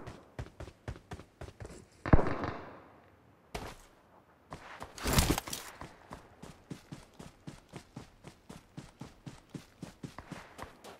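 Footsteps run quickly over dirt and gravel.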